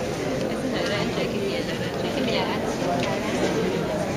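Young women chat and giggle close by.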